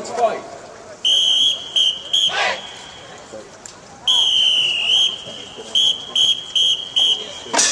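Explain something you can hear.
A whistle blows in short, sharp, shrill blasts.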